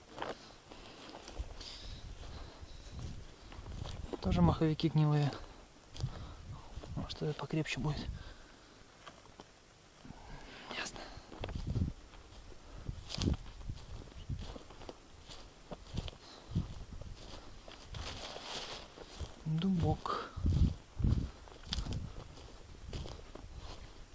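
Footsteps crunch and rustle on a forest floor.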